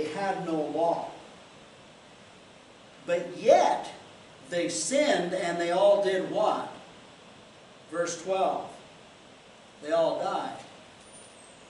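An older man speaks calmly in short phrases with pauses, close by.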